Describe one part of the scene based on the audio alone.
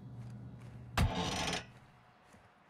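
A door bangs open onto the outdoors.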